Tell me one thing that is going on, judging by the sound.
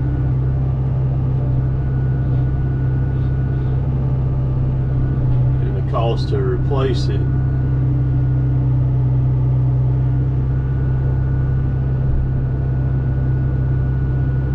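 A diesel excavator engine rumbles steadily close by.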